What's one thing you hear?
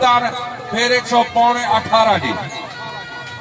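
A man calls out loudly in a long, drawn-out voice.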